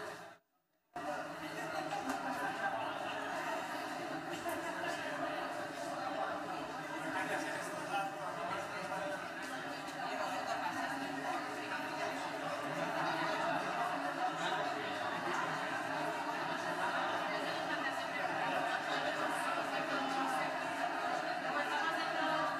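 A crowd of men and women chatter in a large echoing hall.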